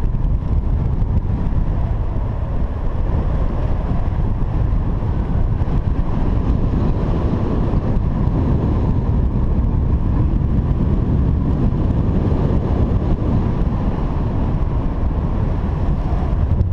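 Strong wind rushes and buffets steadily outdoors high in the air.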